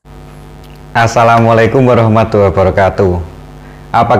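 A man speaks loudly and with animation, close to the microphone.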